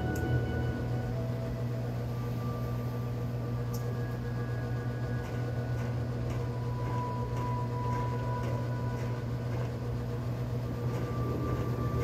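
Soft, steady music plays through a television speaker.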